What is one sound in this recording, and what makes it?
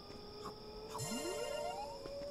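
A bright, sparkling chime rises.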